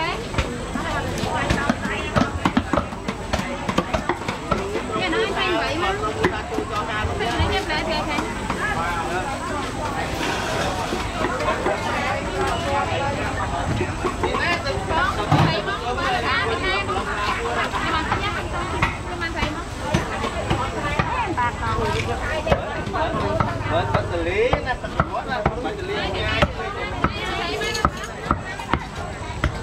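Many people talk at once around a busy outdoor market.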